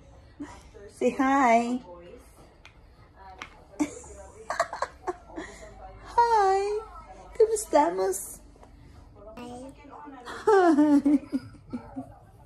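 A small girl talks in a high voice.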